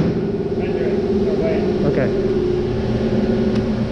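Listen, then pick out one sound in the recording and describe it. A fish thumps down onto a plastic tray.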